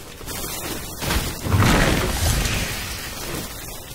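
A game shield potion bursts with a loud whooshing splash.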